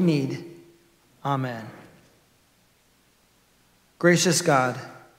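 A man chants a prayer through a microphone, echoing in a large hall.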